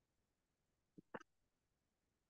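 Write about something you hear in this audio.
A small jar clicks against a table.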